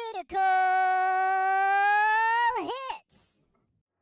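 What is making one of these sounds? A cartoonish high-pitched voice sings a long, steady note, then breaks off with a wobble.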